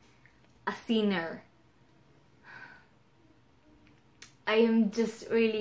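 A young woman talks calmly and close up, with pauses.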